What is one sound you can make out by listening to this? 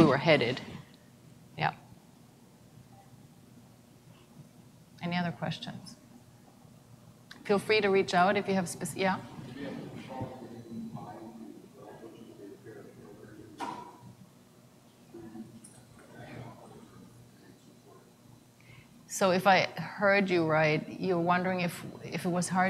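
A woman speaks calmly through a microphone in a large room, with pauses.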